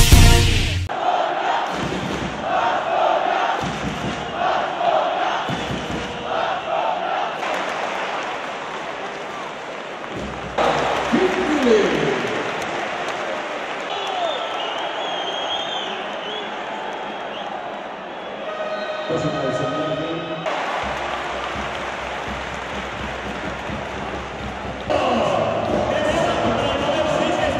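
A large crowd chants and cheers in a big echoing arena.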